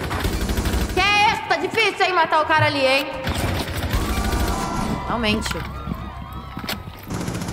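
A young woman speaks with animation into a headset microphone.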